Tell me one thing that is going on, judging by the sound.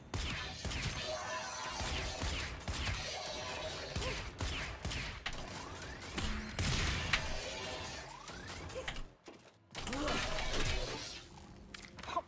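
Guns fire in rapid bursts close by.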